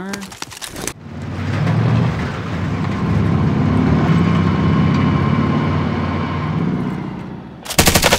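A heavy truck engine idles with a steady low rumble.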